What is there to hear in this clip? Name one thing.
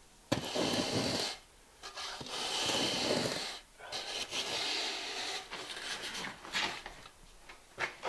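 A metal straightedge scrapes in long gritty strokes across wet mortar.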